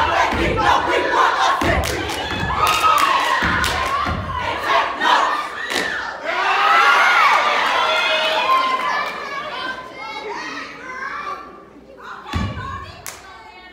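A group of young women stomp their feet on a wooden stage, heard in a large echoing hall.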